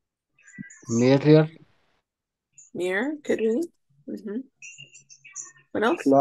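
A woman speaks slowly and clearly over an online call.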